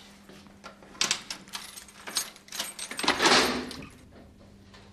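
Keys jingle and a lock clicks.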